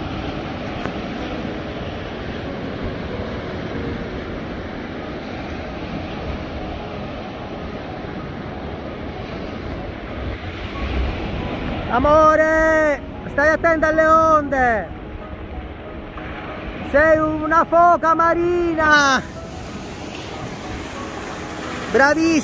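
Waves break and wash up onto the shore.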